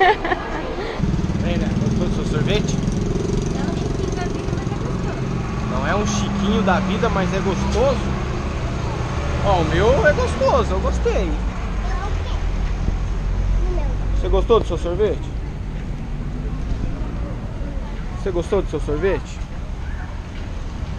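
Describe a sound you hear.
Street traffic rumbles steadily in the background.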